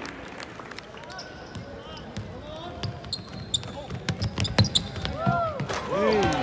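A basketball thumps as it bounces on the court.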